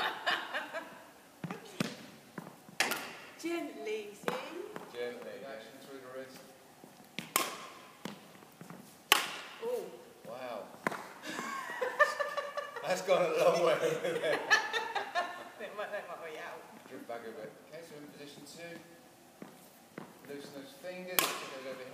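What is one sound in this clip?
A young woman talks and laughs close by, in an echoing hall.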